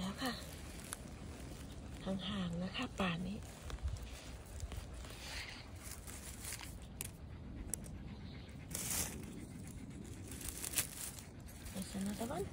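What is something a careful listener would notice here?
Dry pine needles and grass rustle close by.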